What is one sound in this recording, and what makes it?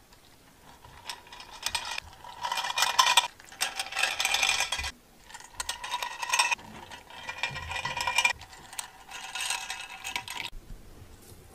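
Hands rub and scrape across a metal baking tray.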